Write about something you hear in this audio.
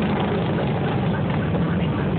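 A motorcycle rides slowly past with a deep engine rumble.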